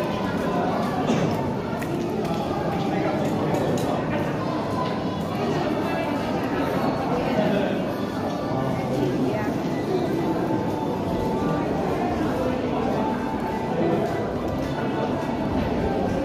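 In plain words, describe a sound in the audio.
Many people's voices chatter and echo in a long tunnel.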